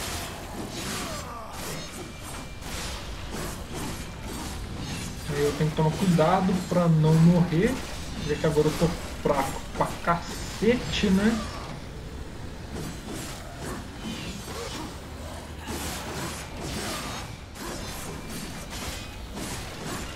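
Blades swish and clash in a fast fight.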